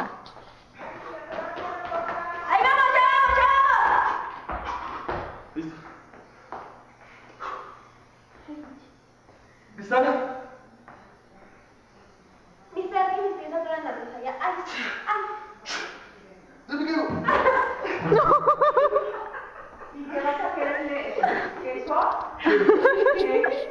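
A young woman laughs loudly nearby.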